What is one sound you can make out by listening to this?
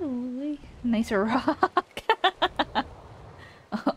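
A young woman laughs loudly close to a microphone.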